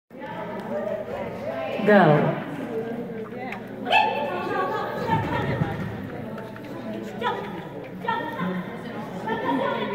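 Women talk quietly close by.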